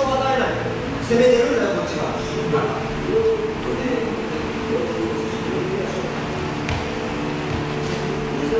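A man talks casually nearby in a large echoing hall.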